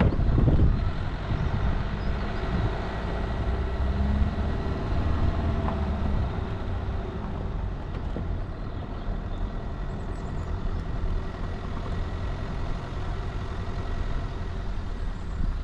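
Tyres crunch and rattle over a rough dirt road.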